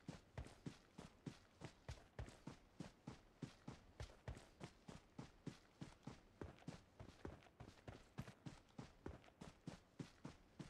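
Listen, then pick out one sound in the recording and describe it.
Footsteps thud quickly and steadily on dirt and grass.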